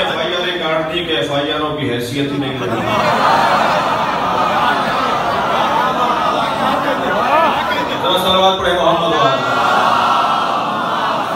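A man speaks with fervour through a microphone and loudspeakers in an echoing room.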